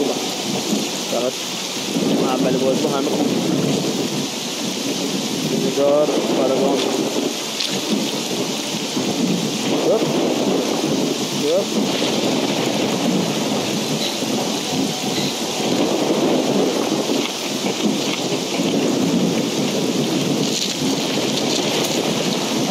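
A young man talks calmly into a close headset microphone.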